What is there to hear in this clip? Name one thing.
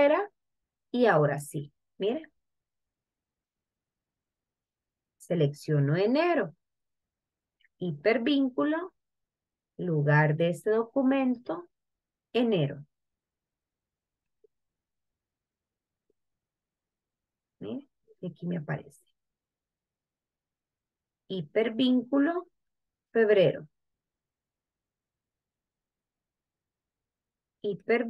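A woman speaks calmly into a microphone in short phrases, heard through an online call.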